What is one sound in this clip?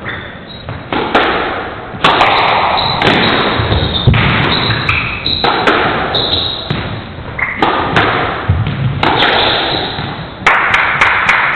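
A squash ball smacks off rackets and walls, echoing in a hard-walled court.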